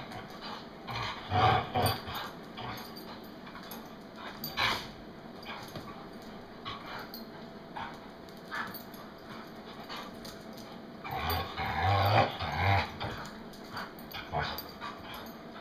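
A dog's paws scuffle on a hard floor.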